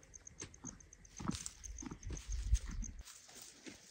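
A foal's hooves crunch on dry stubble.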